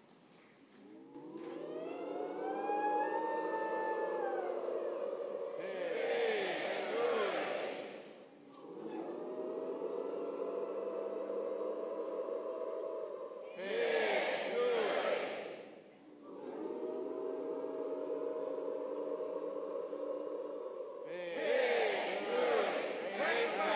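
A large crowd chants together in long, drawn-out calls that echo through a big hall.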